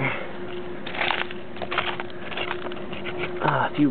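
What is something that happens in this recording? A hand scrapes and digs through loose soil.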